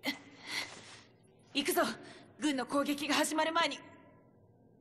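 A young woman speaks calmly and quietly.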